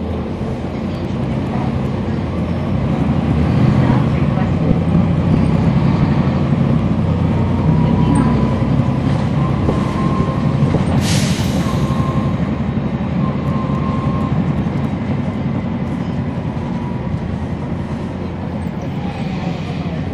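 A bus engine idles with a low, steady rumble close by.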